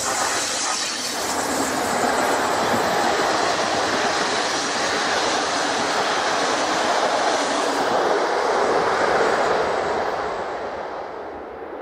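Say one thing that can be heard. A passenger train rumbles past close by, wheels clattering on the rails, then fades.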